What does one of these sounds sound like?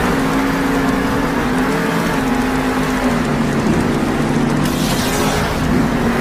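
Big tyres churn over dirt.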